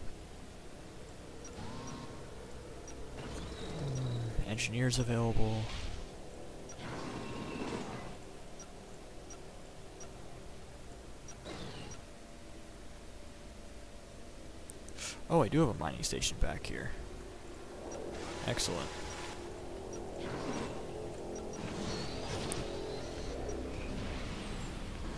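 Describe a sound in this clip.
Electronic game sound effects chirp and whir in short bursts.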